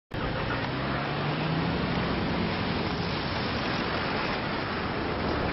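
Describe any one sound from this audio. A car engine hums as a car drives past and moves away.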